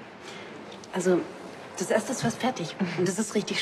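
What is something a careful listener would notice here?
A young woman speaks softly and warmly nearby.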